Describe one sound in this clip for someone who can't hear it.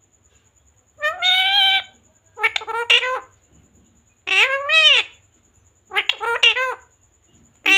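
A parrot squawks and chatters in loud, pitched bursts close by.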